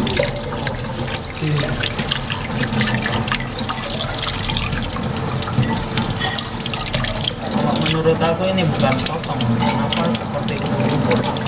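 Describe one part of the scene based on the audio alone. Water runs steadily from a tap and splashes into a sink.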